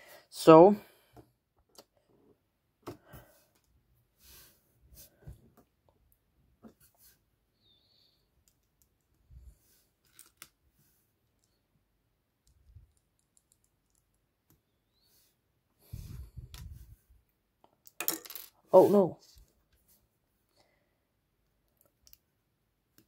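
Small plastic toy bricks click softly as they are handled and snapped together.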